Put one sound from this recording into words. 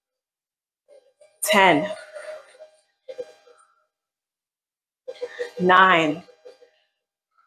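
A woman calls out loudly nearby, in short bursts.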